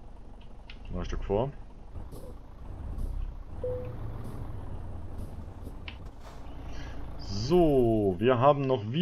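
A truck engine idles with a low rumble.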